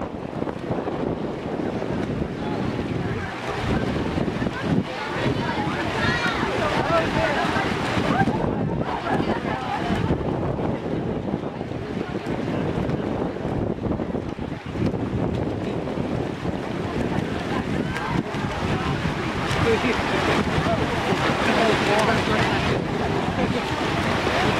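Swimmers splash through the water steadily.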